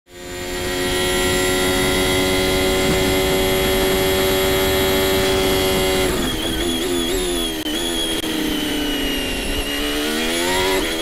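A racing car engine screams at a steady high pitch, then drops and rises as the gears shift.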